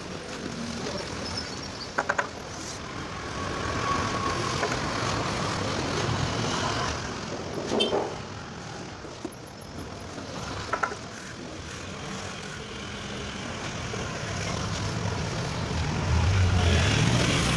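A trowel scrapes and smooths wet cement.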